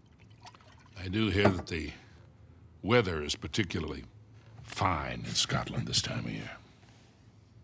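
A middle-aged man speaks calmly and warmly, close by.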